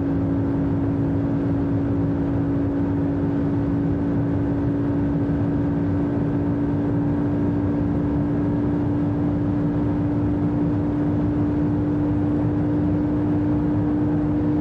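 A car engine drones loudly at high speed with a steady pitch.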